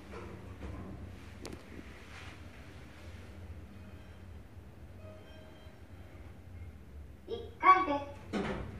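An elevator car hums low as it travels between floors.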